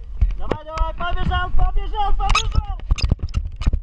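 A young man shouts excitedly, close by.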